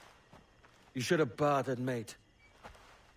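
A man speaks gruffly with a rough voice.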